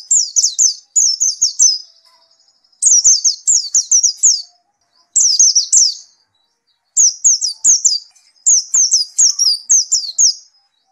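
A small bird sings close by in bursts of quick, high, repeated chirps.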